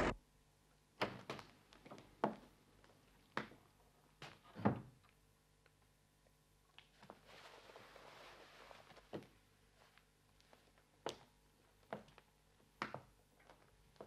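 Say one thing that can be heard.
Footsteps knock on a wooden floor indoors.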